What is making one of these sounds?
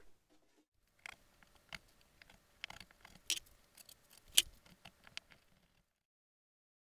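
Panels tap and knock against a wall.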